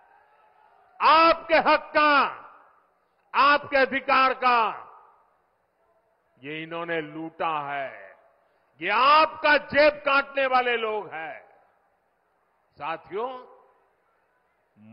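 An elderly man speaks forcefully into a microphone over loudspeakers, in short bursts with pauses.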